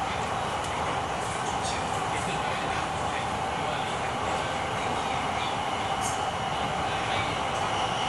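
A train hums and rattles steadily along an elevated track.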